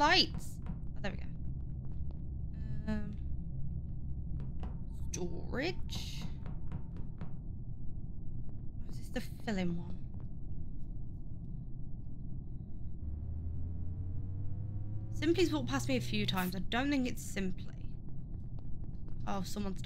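A woman speaks close to a microphone, in short, lively bursts.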